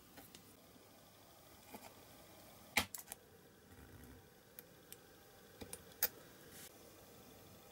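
A craft knife scrapes and cuts a thin plastic strip.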